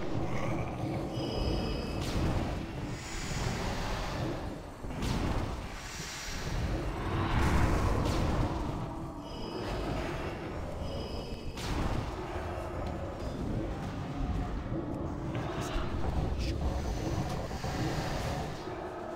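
Spell effects and weapon clashes ring out from a game battle.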